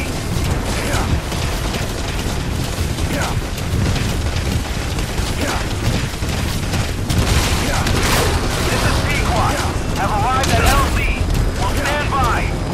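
A horse gallops with heavy, rapid hoofbeats on dry ground.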